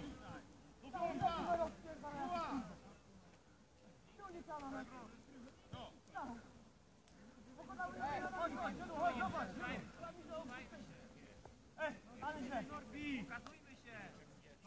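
Football players shout to each other in the distance outdoors.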